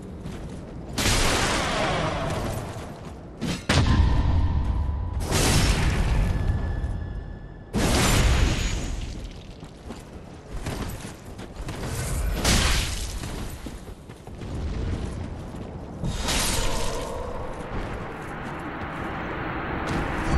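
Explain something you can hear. Swords clash and strike armour in a fight.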